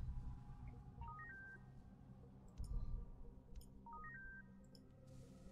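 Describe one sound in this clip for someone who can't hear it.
Short electronic beeps chirp in quick steps.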